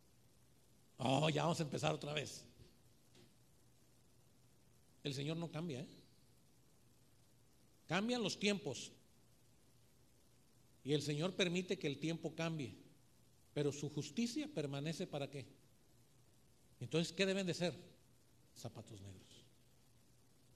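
A middle-aged man speaks with feeling into a microphone, in short bursts with pauses.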